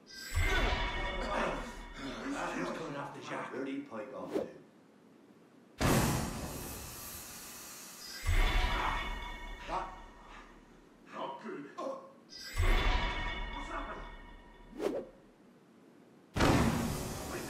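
A gas bomb bursts with a loud whoosh and hiss.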